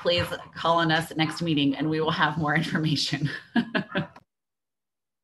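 An adult speaks with animation over an online call.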